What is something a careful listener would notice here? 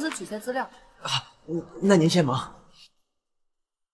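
A young man speaks cheerfully nearby.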